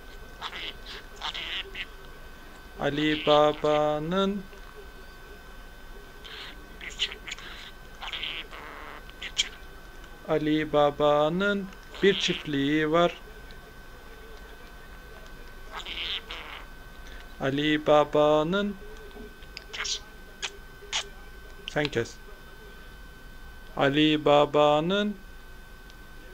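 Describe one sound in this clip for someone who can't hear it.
A budgie chirps and twitters close by.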